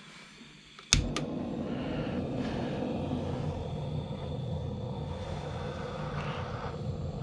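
A gas torch roars steadily close by.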